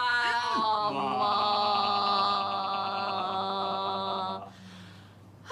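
A woman holds a long sung note.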